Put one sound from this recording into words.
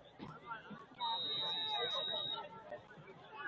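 A referee blows a short whistle outdoors.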